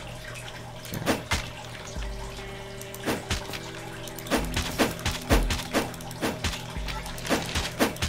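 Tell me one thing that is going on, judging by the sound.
A game character swings a weapon with sharp whooshing hits.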